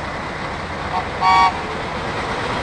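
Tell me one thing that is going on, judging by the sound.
A railcar horn sounds briefly.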